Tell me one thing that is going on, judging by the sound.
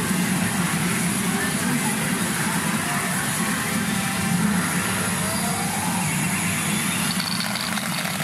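Steel balls rattle steadily through a pachinko machine.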